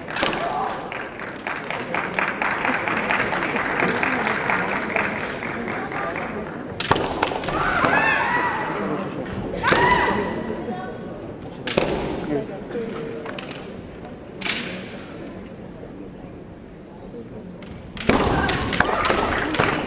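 A crowd claps rapidly.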